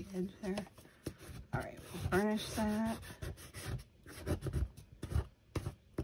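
A sponge dabs against paper.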